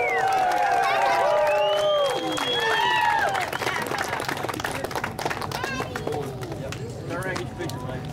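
A crowd claps outdoors.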